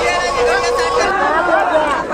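A crowd cheers and chants with raised hands.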